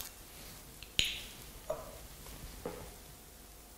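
A glass bottle clinks against a wine glass.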